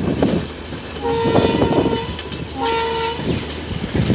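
A train horn blows two long blasts.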